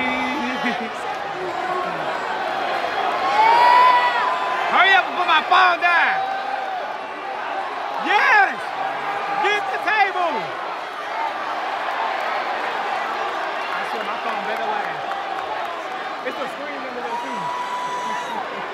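A large crowd cheers and chatters steadily in a big echoing arena.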